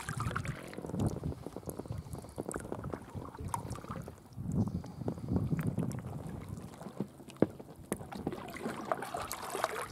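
Water laps against the side of a kayak.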